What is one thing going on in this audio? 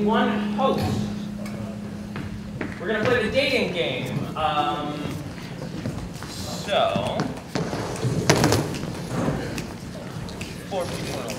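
A young man speaks with animation on a stage.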